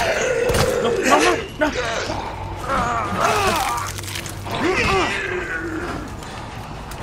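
A monster snarls and shrieks close by.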